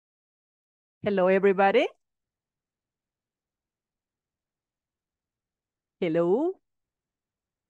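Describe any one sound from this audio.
A woman speaks briefly and calmly over an online call.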